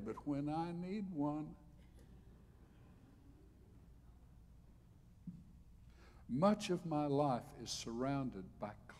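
An elderly man speaks with emphasis into a microphone, pausing between phrases.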